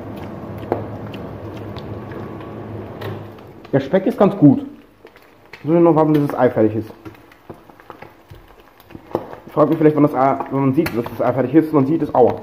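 Eggs sizzle in a frying pan.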